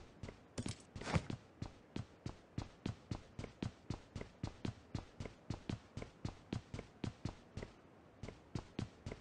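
Footsteps thud quickly and steadily on a hard surface.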